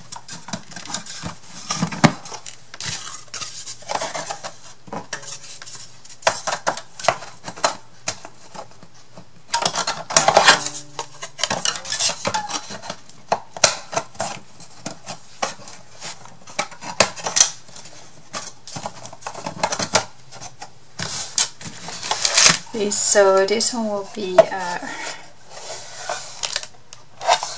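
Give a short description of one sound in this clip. Cardboard pieces scrape and knock together as they are handled.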